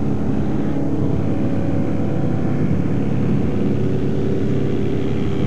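Water sprays and hisses under the plane's floats.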